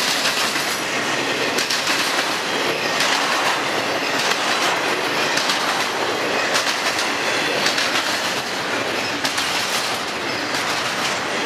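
A freight train rolls by close up with a steady loud rumble.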